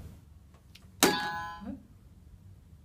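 A quiz buzzer sounds with a bright electronic tone.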